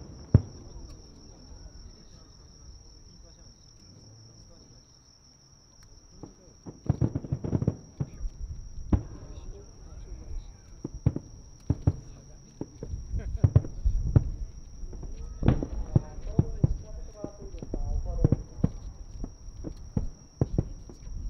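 Fireworks boom and crackle in the distance, echoing across open ground.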